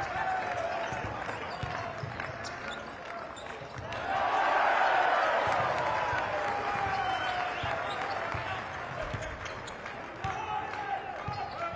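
A large indoor crowd cheers and chants, swelling loudly partway through.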